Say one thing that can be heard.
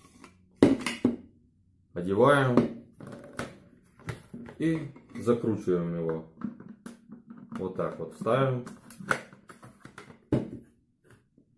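Plastic parts knock and click as a man handles them.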